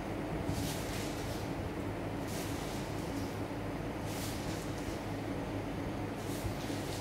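Thin strands rustle and swish in short bursts.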